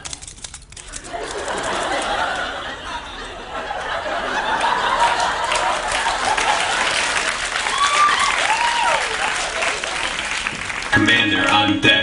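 An audience laughs in a large hall.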